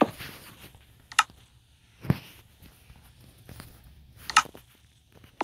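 Menu buttons click sharply.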